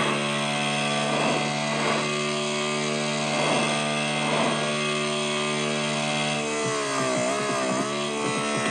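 A motorcycle engine drones steadily at high revs, then drops and wavers in pitch as it slows.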